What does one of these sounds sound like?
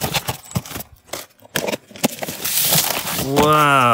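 Packing tape rips as a box is cut open.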